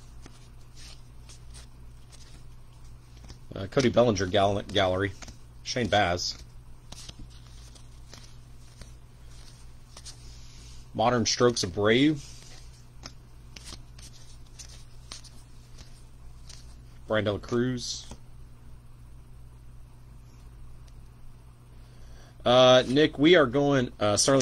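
Cards softly slide and flick as a stack is flipped through by hand.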